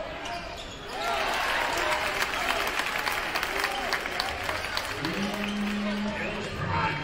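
A crowd cheers and shouts loudly after a basket.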